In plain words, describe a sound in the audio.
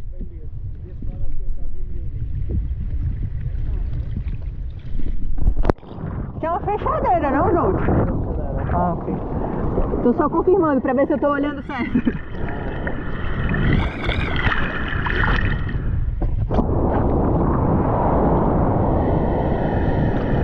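Water splashes and laps against a board close by.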